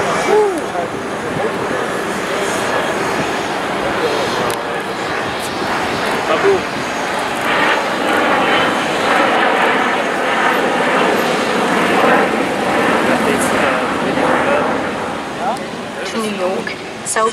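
A jet engine roars loudly overhead as a plane passes low.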